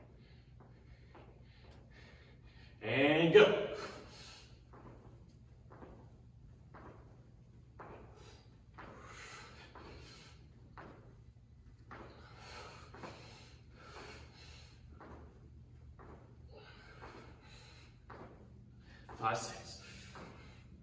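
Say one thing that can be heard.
A young man speaks calmly nearby in an echoing hall.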